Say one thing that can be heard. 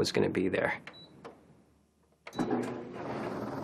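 A dryer control panel beeps as buttons are pressed.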